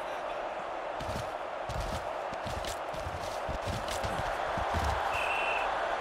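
Football players thud and clash as they collide.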